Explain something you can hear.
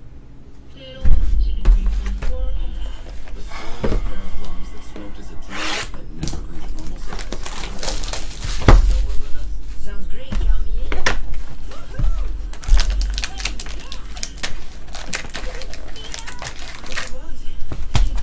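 Card packs rustle and knock as they are handled.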